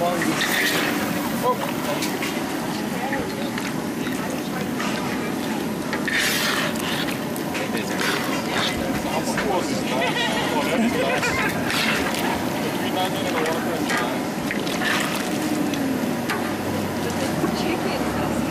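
A metal skimmer scrapes against the pan.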